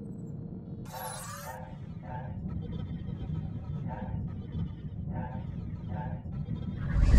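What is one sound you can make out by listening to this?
Short soft chimes sound each time a menu item is picked.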